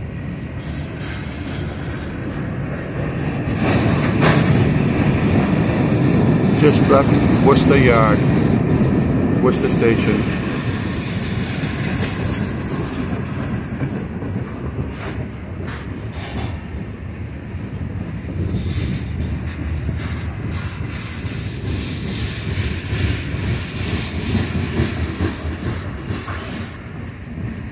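Freight cars rumble and clank past over the rails.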